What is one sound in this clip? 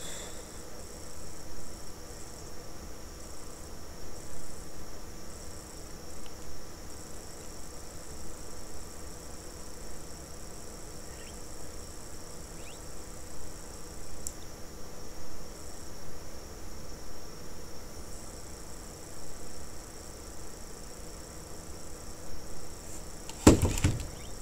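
Keys on a keyboard click softly and rapidly.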